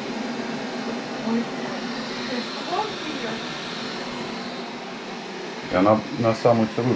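A robot vacuum whirs steadily.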